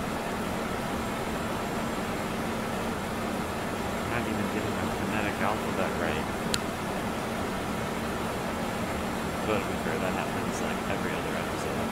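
Jet engines hum steadily at idle.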